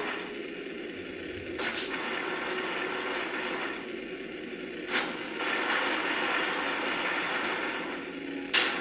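Electronic game music plays from a small phone speaker.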